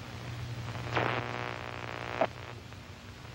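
A radio whines and crackles as its dial is turned.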